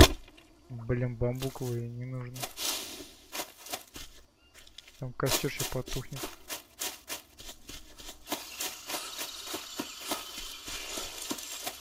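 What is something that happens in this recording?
Footsteps crunch on dry leaves and undergrowth.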